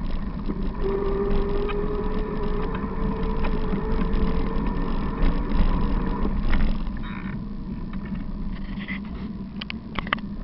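Tyres roll steadily over asphalt.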